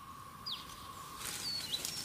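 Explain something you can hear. Footsteps rustle through grass and leaves.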